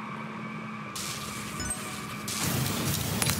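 A boost whooshes loudly with a sparkling burst.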